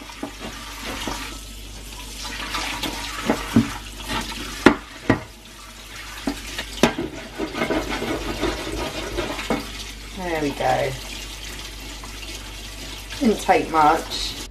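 Water runs from a tap into a metal sink.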